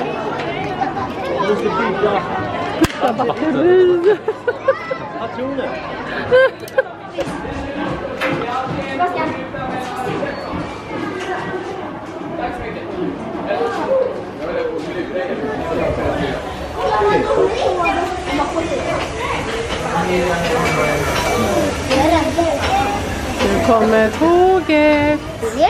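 Adults talk among themselves in the background.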